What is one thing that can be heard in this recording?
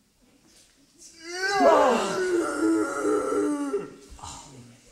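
A young man sings out loudly and dramatically.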